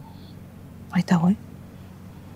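A middle-aged woman answers briefly and quietly.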